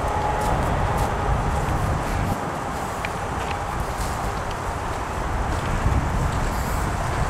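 An aerosol spray can hisses.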